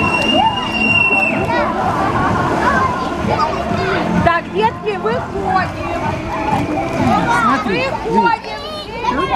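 Water splashes as children move about in a pool.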